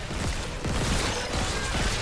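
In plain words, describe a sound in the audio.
A gun fires with sharp blasts.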